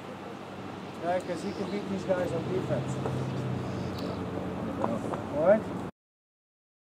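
An elderly man talks firmly to a group of young men.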